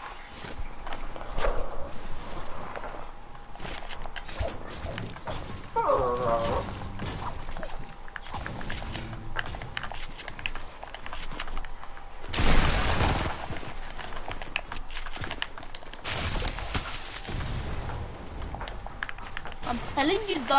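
Building pieces snap into place with quick clacks.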